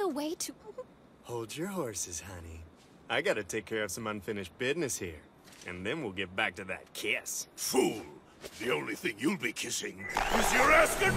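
A young man speaks cheerfully.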